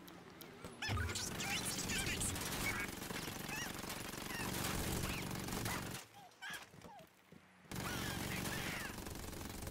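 A submachine gun fires in rapid bursts indoors.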